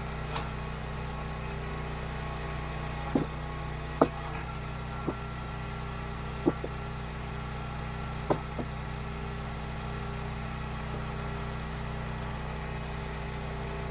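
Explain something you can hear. A gasoline engine idles steadily nearby.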